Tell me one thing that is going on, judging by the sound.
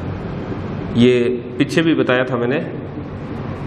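A young man speaks calmly in a slightly echoing room.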